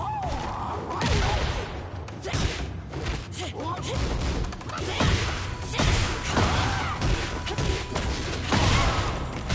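Punches and kicks land with heavy thuds and impacts.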